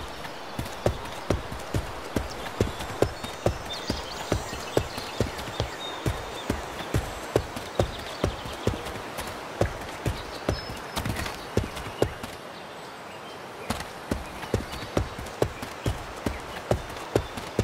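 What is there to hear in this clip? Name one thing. Footsteps crunch steadily on dirt and gravel.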